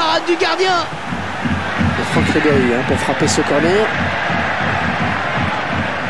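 A large stadium crowd roars and cheers.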